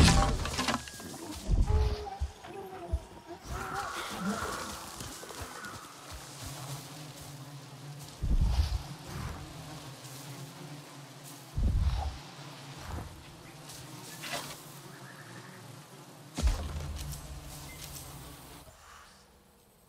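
Leaves rustle as someone pushes through dense undergrowth.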